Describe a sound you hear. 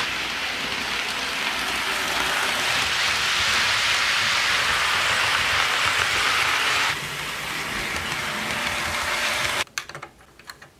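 Model train wheels clatter and hum steadily along the track.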